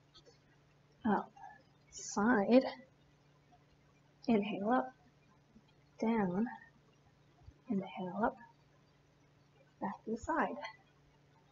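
A woman speaks calmly in short phrases, close to a microphone.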